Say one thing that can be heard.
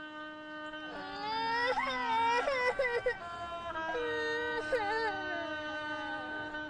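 A young boy cries loudly.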